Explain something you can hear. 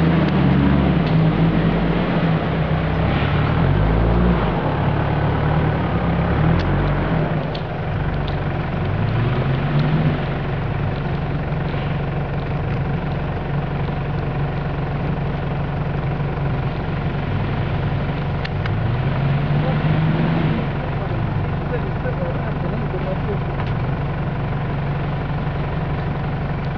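Tyres crunch over mud and dead leaves.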